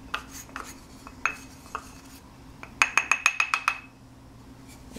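A flour sifter clicks and rattles rapidly.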